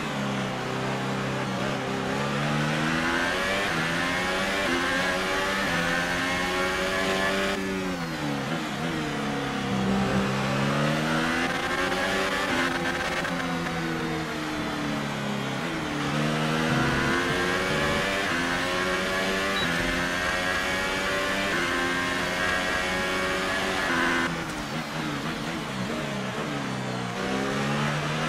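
A racing car engine screams loudly, rising and falling in pitch as it shifts gears.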